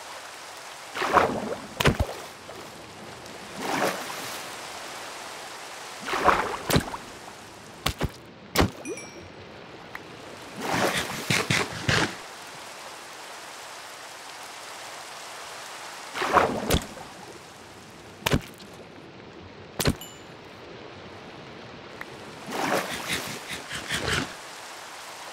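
Water swishes and bubbles in short bursts.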